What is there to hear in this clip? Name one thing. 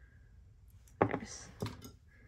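Small metal jewellery pieces clink as they drop onto a table.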